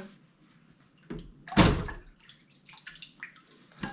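Dishes clink in a sink.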